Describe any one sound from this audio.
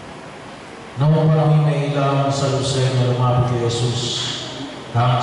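A middle-aged man sings a loud chant through a loudspeaker.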